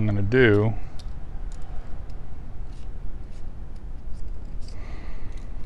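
Small metal fishing hooks click faintly as they are handled.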